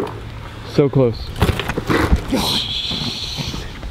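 A bike crashes down onto grass.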